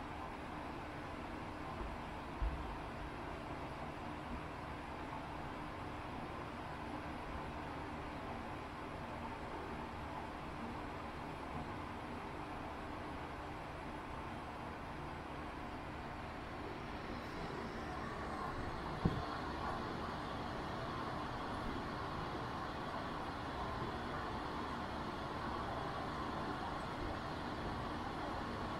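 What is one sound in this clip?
Soft, steady ambient game sounds play from small laptop speakers.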